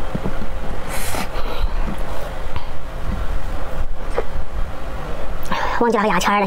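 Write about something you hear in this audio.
A young woman speaks close to a clip-on microphone.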